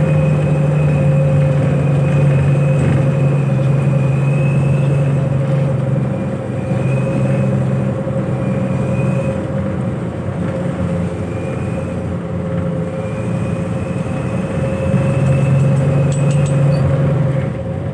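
The bus rattles and vibrates over the road.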